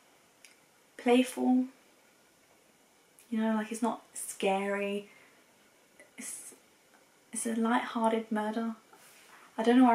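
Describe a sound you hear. A young woman speaks casually and close by, in short bursts with pauses.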